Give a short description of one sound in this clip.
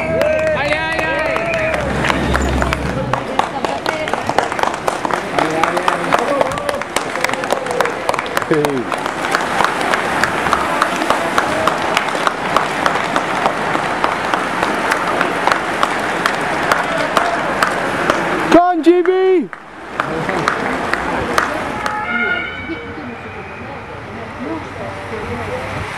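A crowd of spectators cheers loudly outdoors.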